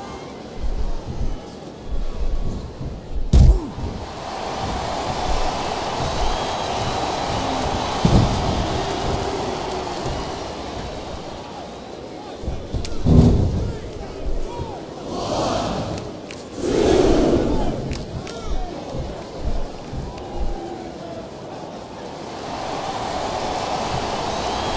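An arena crowd cheers and murmurs.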